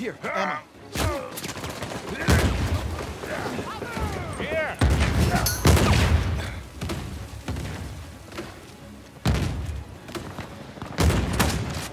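Gunshots bang in sudden loud bursts.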